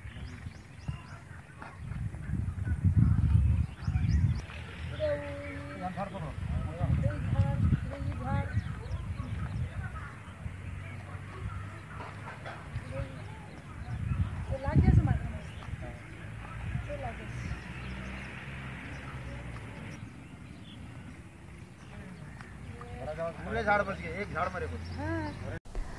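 Men talk loudly nearby outdoors.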